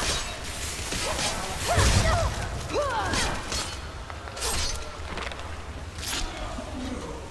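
Blades clash and strike sharply.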